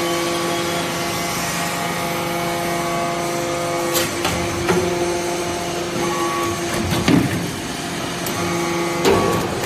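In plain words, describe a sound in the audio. A hydraulic press hums steadily.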